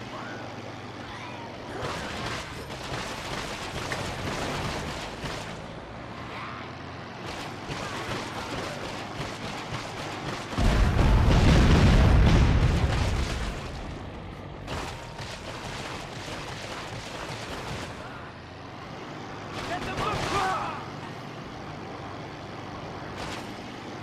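A heavy vehicle engine roars steadily.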